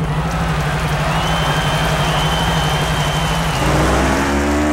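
A motorcycle engine idles with a steady low rumble.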